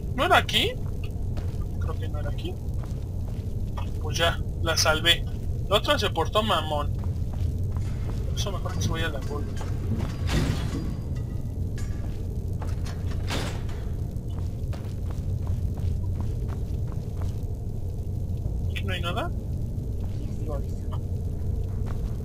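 Footsteps scuff slowly across a stone floor.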